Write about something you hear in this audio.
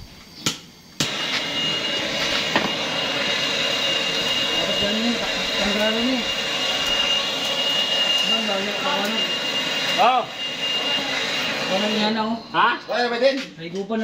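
Gas hisses steadily from a cylinder.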